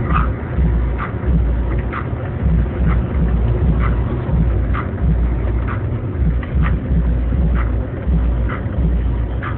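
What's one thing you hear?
A car engine runs with a low, steady rumble.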